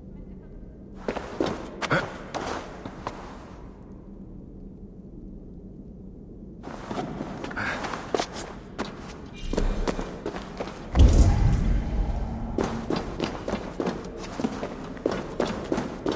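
Footsteps crunch on loose dirt.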